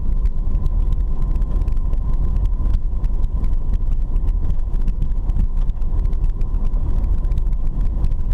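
Tyres rumble and crunch over a rough dirt road.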